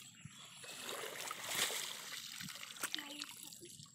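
Water drips and splashes from a woven basket.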